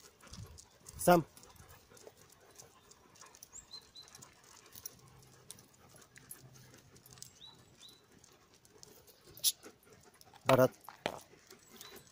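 A dog barks loudly close by.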